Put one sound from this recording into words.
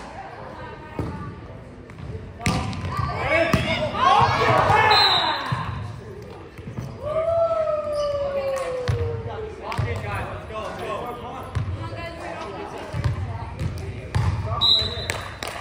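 A volleyball thumps off hands and arms in a large echoing gym.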